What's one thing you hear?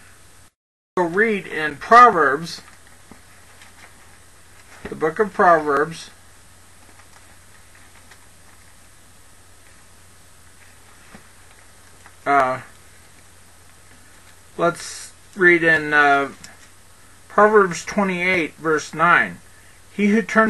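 A man speaks calmly into a close headset microphone, in short bursts with pauses.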